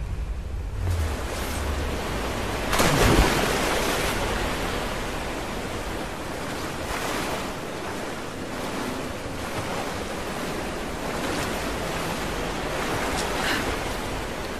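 Water splashes and swirls as a person swims.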